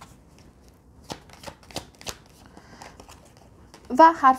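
Playing cards are shuffled by hand with soft flicks and taps.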